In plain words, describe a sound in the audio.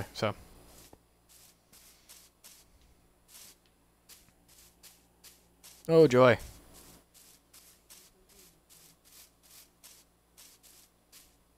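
Footsteps tread steadily over grass.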